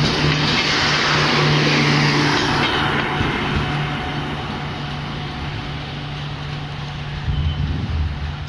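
A passenger train rumbles past close by and slowly fades into the distance.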